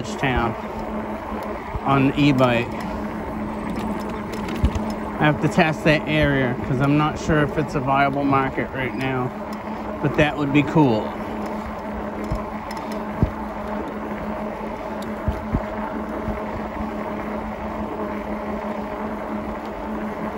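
An electric bike motor whines steadily while riding.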